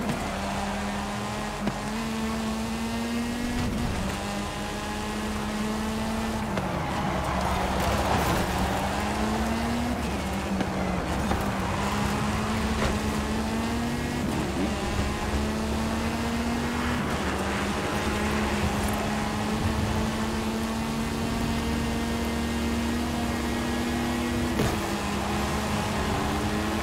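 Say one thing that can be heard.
A racing car engine roars loudly, its pitch climbing and dropping as it shifts through the gears.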